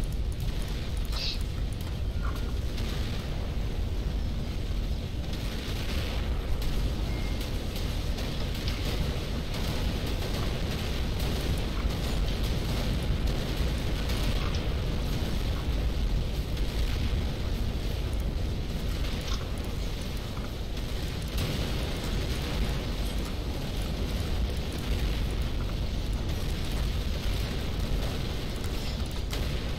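Explosions rumble and crackle steadily in a battle.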